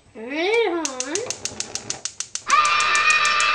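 A gas stove igniter clicks rapidly.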